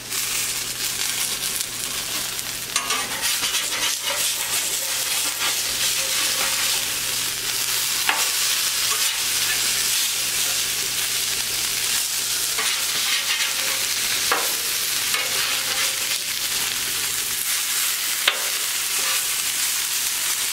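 A metal spatula scrapes and taps on a griddle.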